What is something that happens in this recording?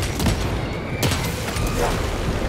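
A fire explosion roars.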